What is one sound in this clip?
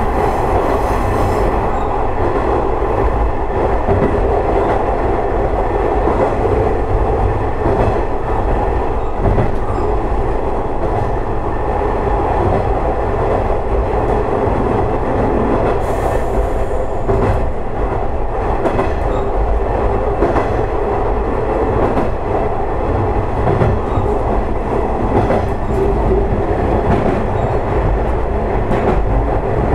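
A train engine rumbles steadily as the train rolls along the track.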